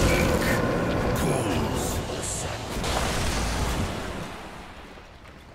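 Magic blasts burst and crackle in a noisy fight.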